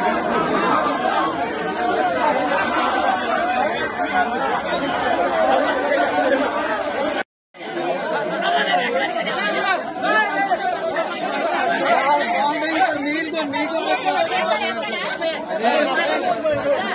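A large crowd of men talk and shout over one another outdoors, close by.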